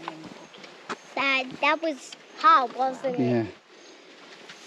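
A small child speaks in a high voice.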